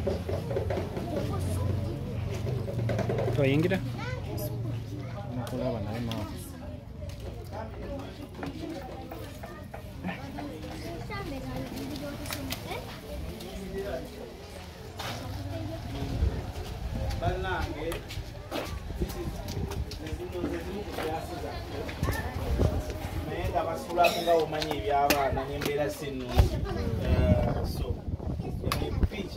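A crowd of men and women talk and murmur close by.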